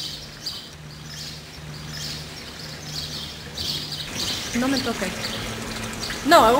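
A fountain splashes and trickles nearby.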